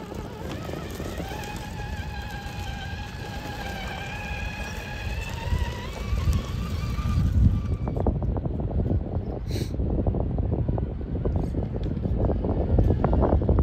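Small tyres crunch and grind over loose gravel and rubble.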